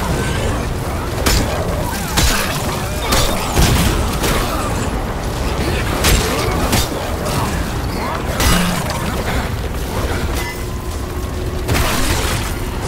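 Heavy blows thud and smash in quick bursts.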